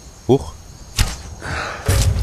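A bowstring snaps as an arrow is loosed.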